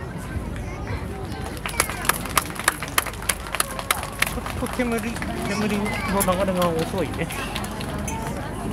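A crowd of people chatters and cheers outdoors.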